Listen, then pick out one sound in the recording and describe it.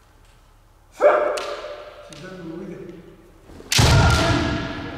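Fencers shout loud battle cries that echo through a large hall.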